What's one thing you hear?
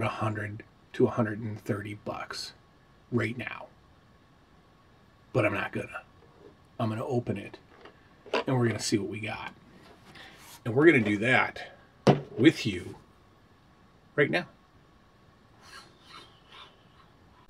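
A man talks calmly and with animation, close up.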